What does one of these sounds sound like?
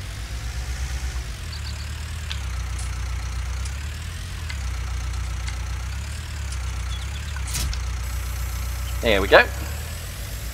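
A tractor engine rumbles steadily at low revs.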